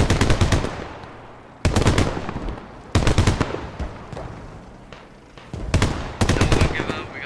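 A tank's machine gun fires in rapid bursts.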